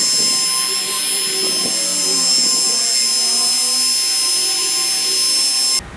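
An electric polisher whirs steadily, buffing a car's paint.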